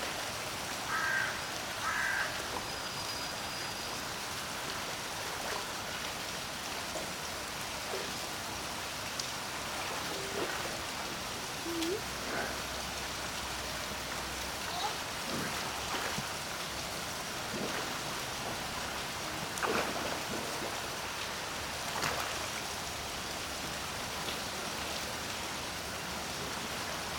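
Water laps and sloshes gently throughout.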